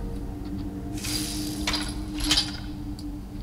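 A metal weapon is drawn with a sharp scraping ring.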